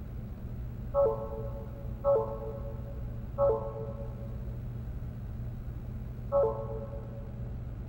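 A game menu beeps softly as selections are made.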